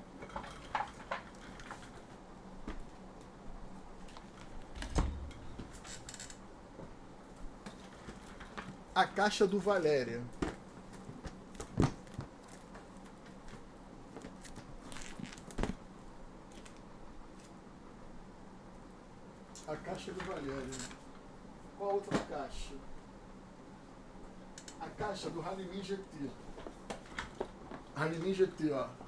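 Cardboard boxes knock and rustle as a man handles them.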